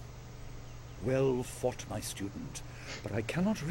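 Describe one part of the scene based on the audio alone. An elderly man speaks calmly and gravely.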